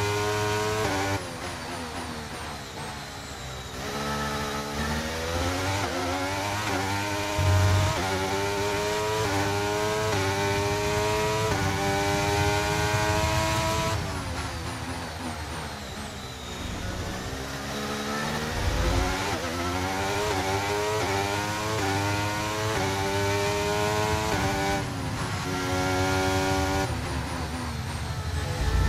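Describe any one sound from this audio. A racing car engine screams loudly, rising in pitch through each gear and dropping sharply at each shift and braking.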